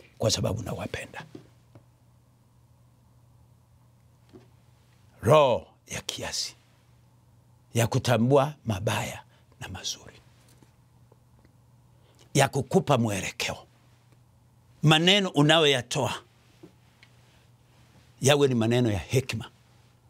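An older man preaches with emphasis into a microphone, with pauses between phrases.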